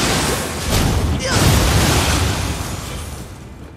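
A loud magical blast bursts and crackles.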